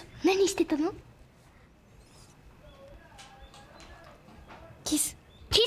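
A young girl speaks softly and playfully up close.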